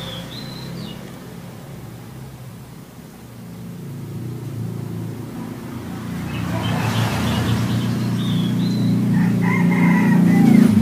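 A small bird sings in short whistled phrases close by.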